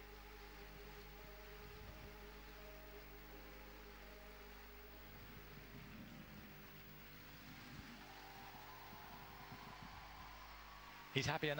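Music plays softly over loudspeakers in a large arena.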